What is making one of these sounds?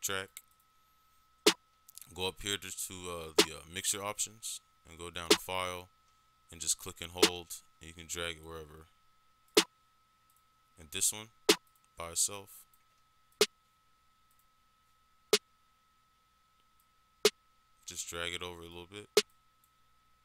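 Electronic music plays in short bursts.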